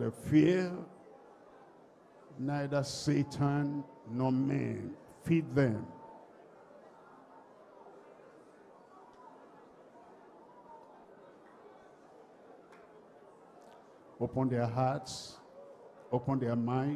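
A crowd murmurs quietly in prayer.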